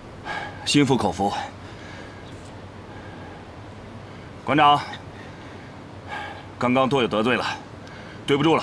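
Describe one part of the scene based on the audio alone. Young men speak in short bursts, surprised and then apologetic, close by.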